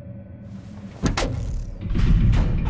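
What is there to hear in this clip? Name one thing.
A switch clicks under a heavy footstep.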